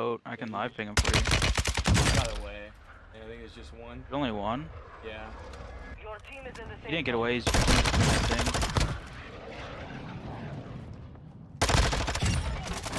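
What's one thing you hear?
Gunfire crackles in loud rapid bursts.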